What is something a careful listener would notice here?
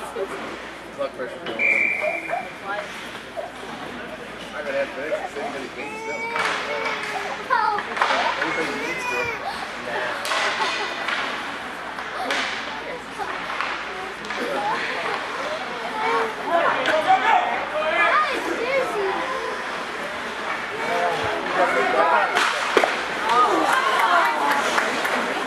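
Voices of players and spectators echo around a large rink.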